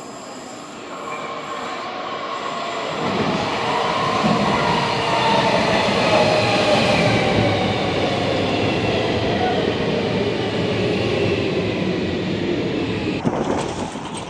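Train brakes squeal in long, falling tones.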